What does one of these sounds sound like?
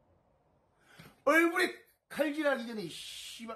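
A man speaks loudly and with animation, close to a microphone.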